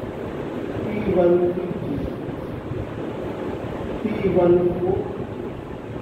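A man speaks in short phrases, as if lecturing.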